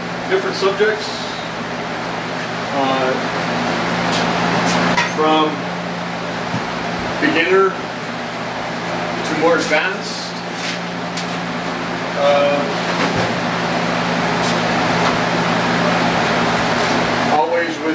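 Objects clatter as a man moves things on shelves.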